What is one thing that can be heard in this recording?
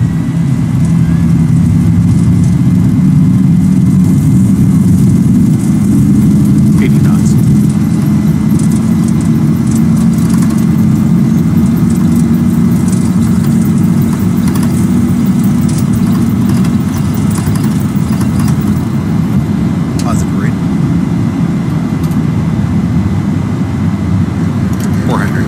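Jet engines roar steadily at full power.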